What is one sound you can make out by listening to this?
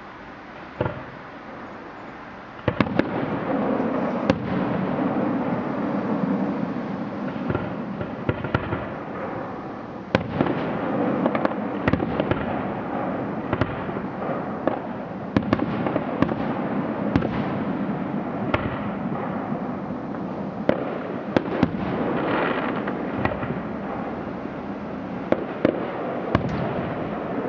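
Fireworks crackle and fizzle after bursting.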